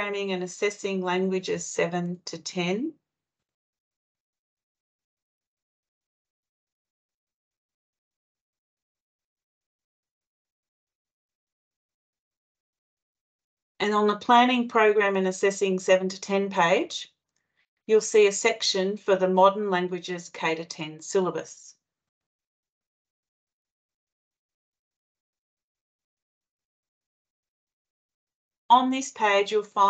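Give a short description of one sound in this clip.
A woman speaks calmly over an online call, presenting.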